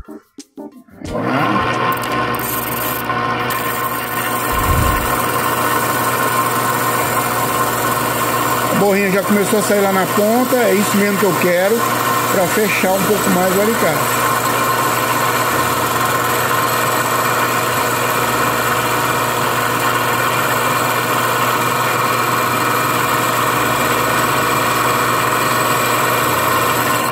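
A small machine motor hums steadily.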